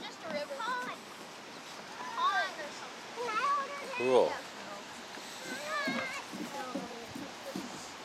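Young children talk and call out nearby outdoors.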